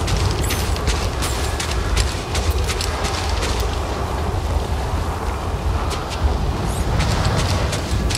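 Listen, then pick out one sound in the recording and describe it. Blowing sand hisses and patters.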